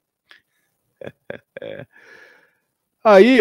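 A man laughs softly close to a microphone.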